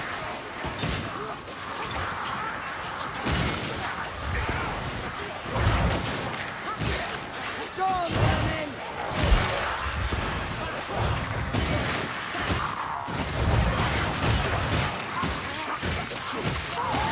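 Heavy weapons strike and crunch into bodies again and again.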